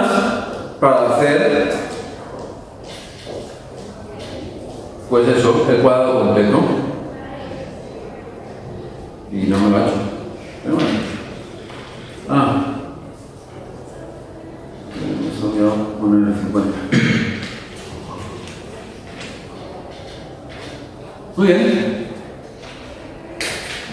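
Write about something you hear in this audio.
A man lectures calmly in a slightly echoing hall, heard through a microphone.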